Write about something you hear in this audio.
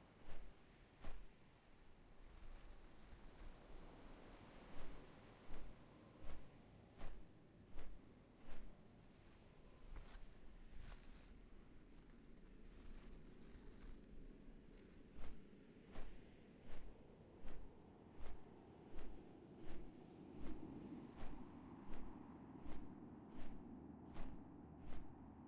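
A large winged creature flaps its wings in a steady rhythm.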